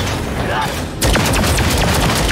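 A heavy magical blast booms.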